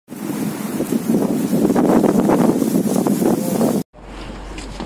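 Strong wind blows and rustles through dry reeds.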